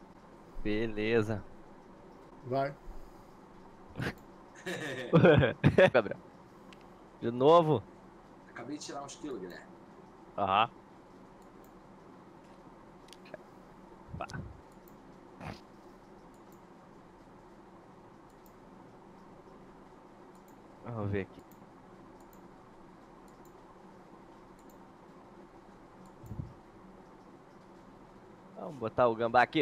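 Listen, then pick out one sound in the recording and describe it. A man speaks casually in short bursts, close to a microphone.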